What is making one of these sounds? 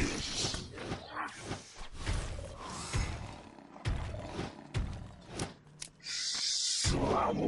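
Magic spells burst and crackle in quick succession.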